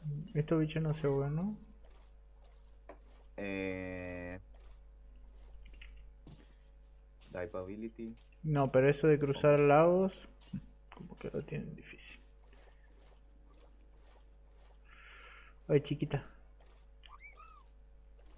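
Water splashes softly as a swimmer paddles through it.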